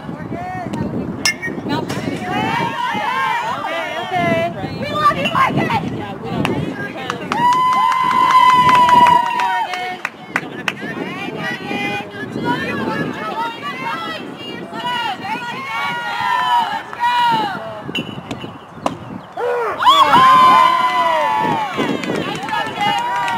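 Young women chant and cheer loudly outdoors.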